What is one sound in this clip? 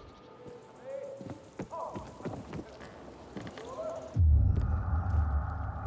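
Footsteps thud across creaking wooden planks.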